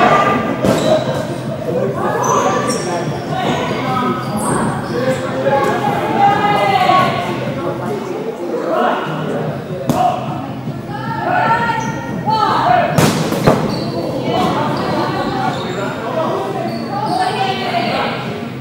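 Young women call out and shout to each other in a large echoing hall.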